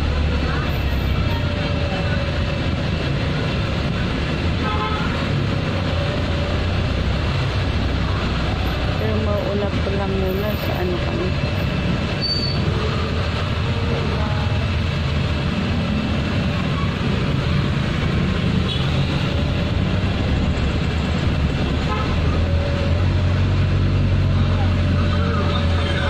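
Motorbike engines buzz in busy street traffic outside.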